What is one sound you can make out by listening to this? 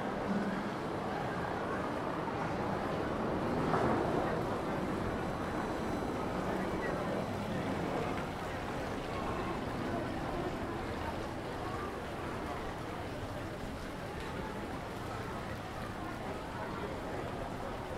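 Water splashes steadily from a fountain.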